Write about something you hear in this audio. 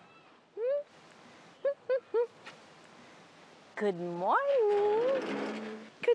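A woman coos to a baby close by in a high, sing-song voice.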